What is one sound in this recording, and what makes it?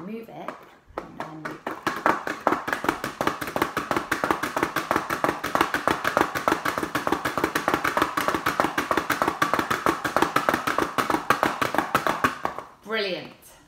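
A paper plate toy spins with a rapid flapping whir.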